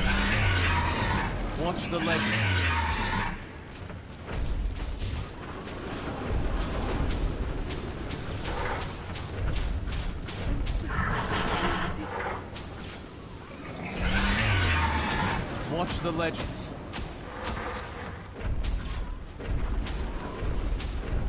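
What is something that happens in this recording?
Magic blasts and hits crackle and thud in quick succession.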